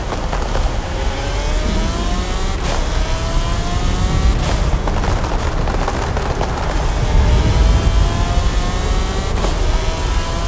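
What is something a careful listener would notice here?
A car engine revs hard, climbing in pitch and dropping with each gear change.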